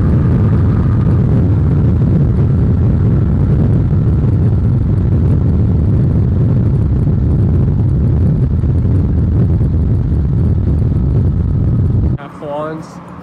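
Wind and road noise roar loudly from a car driving fast.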